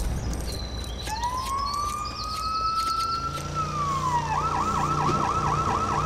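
An electronic scanner hums and warbles with rising and bouncing tones.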